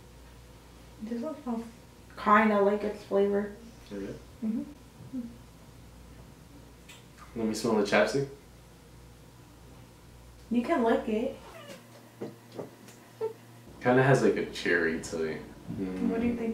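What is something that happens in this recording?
A young woman talks playfully close by.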